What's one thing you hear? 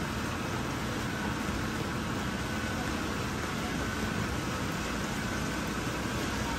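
Rain falls steadily onto standing floodwater outdoors.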